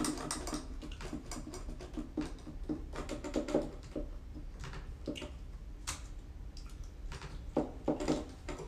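Plastic keyboard keys clack and tap under quick fingers.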